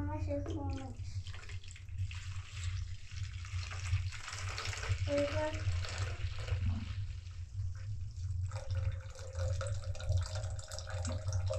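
Liquid pours and splashes into a jug.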